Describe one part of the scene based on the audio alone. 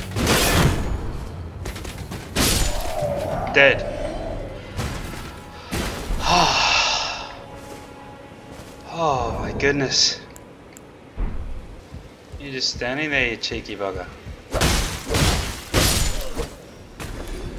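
A sword slashes with sharp, heavy impacts.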